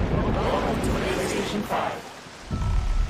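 A large choir of men and women sings together.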